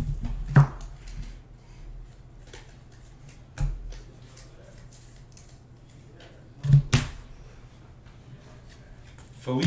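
Trading cards slide and flick against each other as a stack is shuffled.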